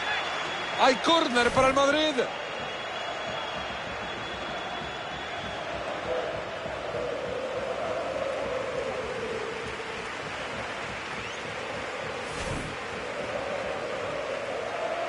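A large crowd roars steadily in a stadium, swelling and falling.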